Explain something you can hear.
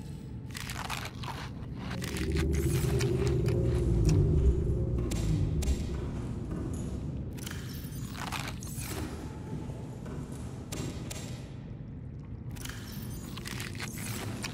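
Soft interface clicks and blips sound as a menu opens and closes.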